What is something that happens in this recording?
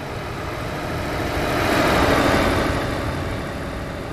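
A passing truck roars by close up.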